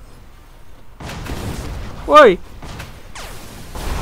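A magic energy blast whooshes and booms.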